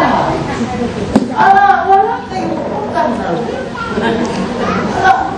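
A man speaks with animation to a gathering, his voice carrying in an open space.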